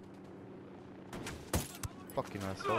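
A rifle fires a single muffled shot.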